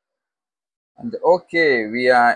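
A young man speaks calmly and close to a microphone.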